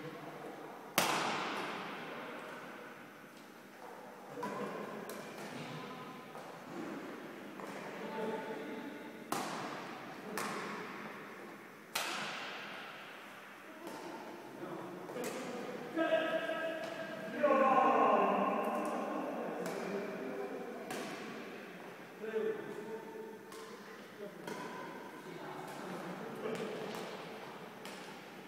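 Shuttlecocks are struck with rackets, each hit a sharp crack ringing through a large echoing hall.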